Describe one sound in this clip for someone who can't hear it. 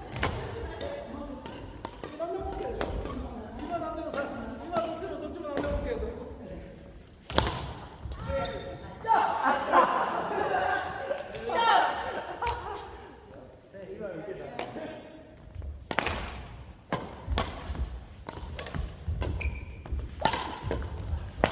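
Shuttlecocks are struck sharply with rackets in a large echoing hall.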